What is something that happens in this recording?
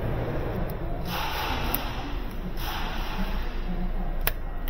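A small handheld power tool whirs in short bursts.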